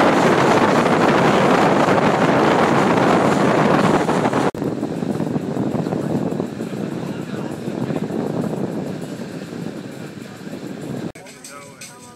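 Wind buffets loudly outdoors on open water.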